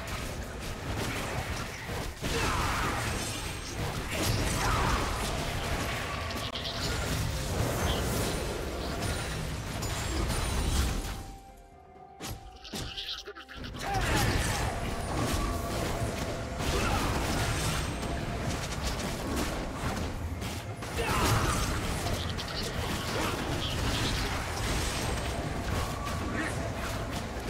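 Game spell effects whoosh and clash in a fight.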